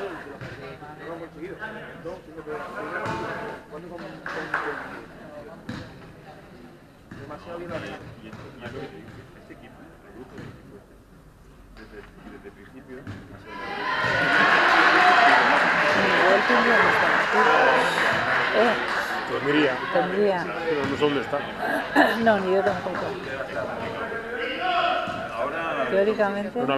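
Young people talk and call out nearby in a large echoing hall.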